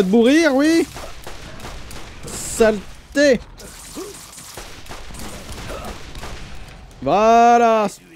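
Gunfire bursts out in quick shots.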